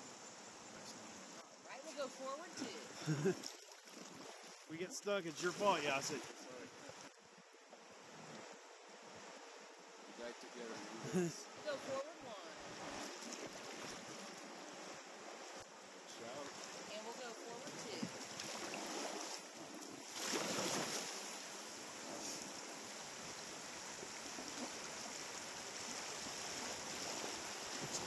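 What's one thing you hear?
Water rushes and splashes around a raft.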